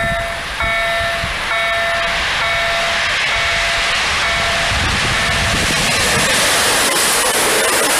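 A train approaches with a rising roar and rushes past close by.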